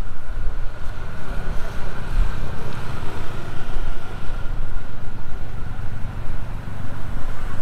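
A small vehicle's engine hums steadily close by.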